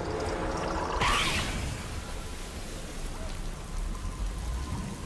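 Water gushes and sprays loudly.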